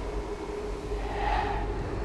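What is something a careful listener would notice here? Flames burst with a whoosh.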